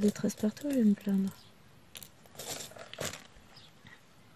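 Small plastic beads rattle in a tray.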